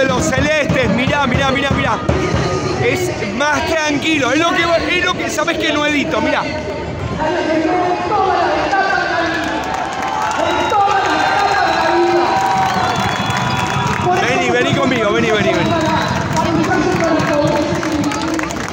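A large crowd sings and chants loudly outdoors.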